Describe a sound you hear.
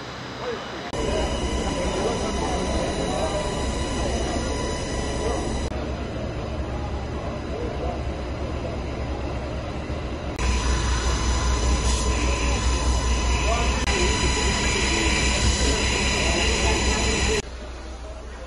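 A crowd of men and women murmur and talk outdoors.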